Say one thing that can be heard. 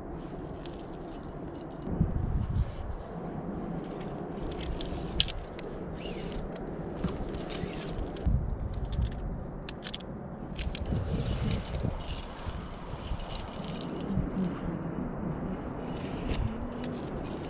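Metal climbing gear clinks and rattles.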